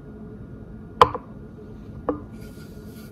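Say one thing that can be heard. A plastic cup is set down on a table with a knock.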